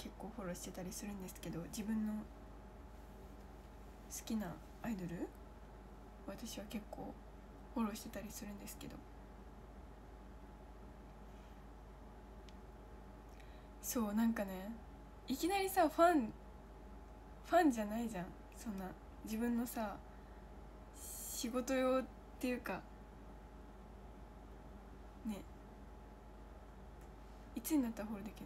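A young woman talks close to a microphone, in a calm, chatty voice with pauses.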